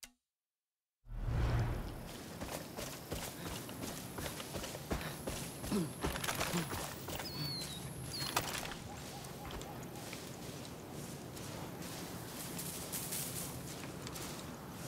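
Footsteps swish through grass, steady and ongoing.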